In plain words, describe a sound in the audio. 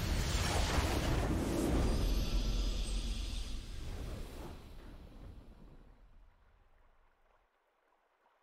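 A triumphant fanfare plays, then fades away.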